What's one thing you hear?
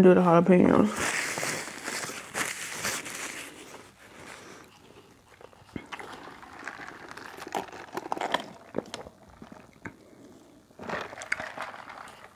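A young woman chews food noisily close by.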